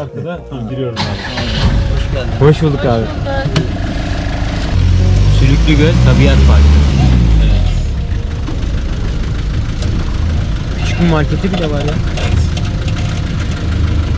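A car engine rumbles steadily from inside the vehicle.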